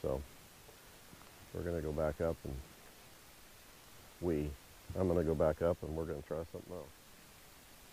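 A man speaks calmly a short distance away.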